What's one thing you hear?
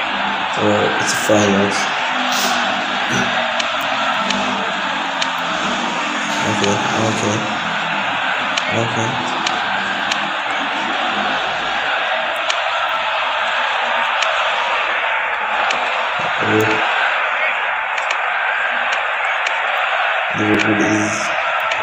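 A football is kicked now and then.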